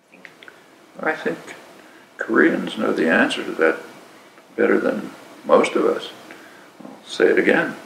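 An elderly man speaks calmly and thoughtfully, close to a microphone.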